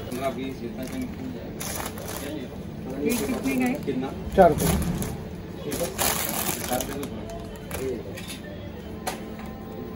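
Rubber balloons rustle and squeak as a hand rummages through them.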